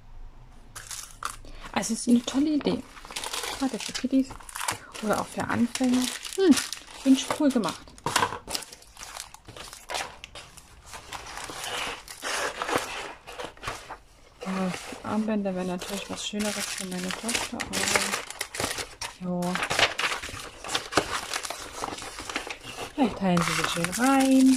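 Plastic sheets and paper rustle and crinkle as hands handle them.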